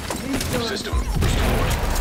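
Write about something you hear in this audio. An explosion bursts with a loud blast.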